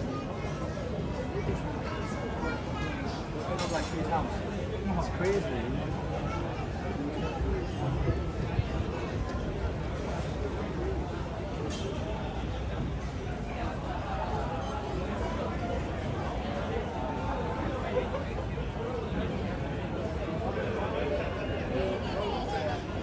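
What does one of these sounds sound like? Many men and women chatter steadily in the background.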